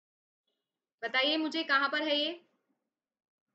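A young woman speaks clearly into a close microphone.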